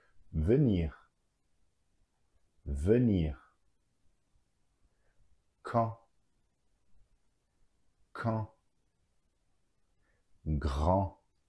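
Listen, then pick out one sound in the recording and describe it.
A man speaks single words clearly and slowly into a close microphone, with pauses between them.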